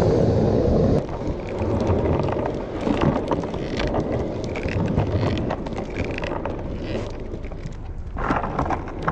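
A skateboard clacks as it bumps over joints in the pavement.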